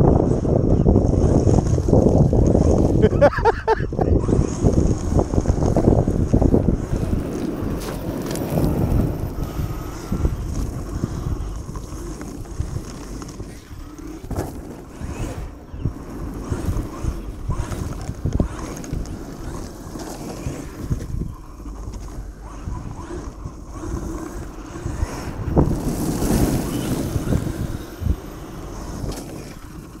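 Wind buffets the microphone outdoors with a low, gusty rumble.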